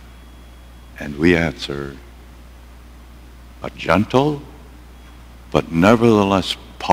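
An elderly man speaks with animation in a large echoing hall.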